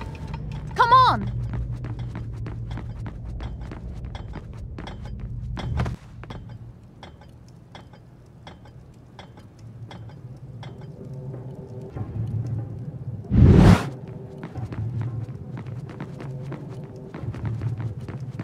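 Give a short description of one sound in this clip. Quick footsteps run across a stone floor.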